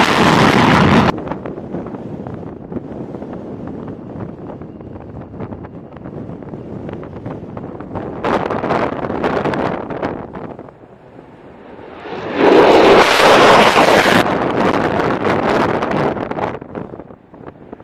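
A jet engine roars loudly as a fighter plane takes off and climbs away.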